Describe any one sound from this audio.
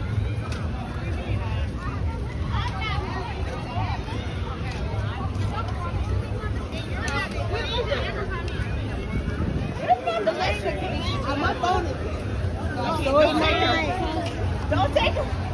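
Young women chat and laugh nearby outdoors.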